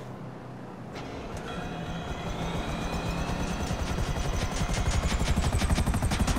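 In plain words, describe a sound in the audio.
A helicopter engine starts up, its whine rising as the rotor speeds up into a fast beating thud.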